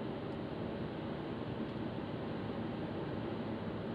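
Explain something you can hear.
A van whooshes past close by.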